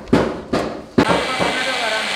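A polishing machine whirs.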